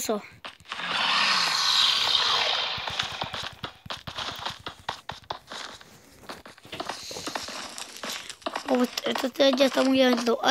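Stone blocks are placed with quick dull clicks.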